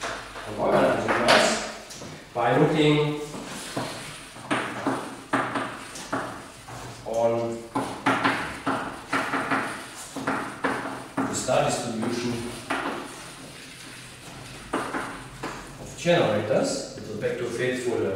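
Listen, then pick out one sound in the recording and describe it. An elderly man lectures calmly in an echoing room.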